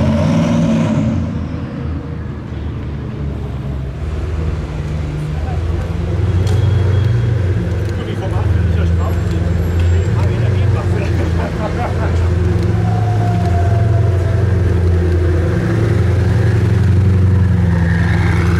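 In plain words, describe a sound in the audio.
A sports car engine idles with a deep rumble close by.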